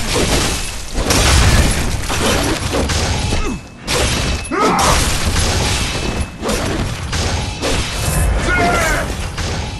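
A huge beast roars and snarls.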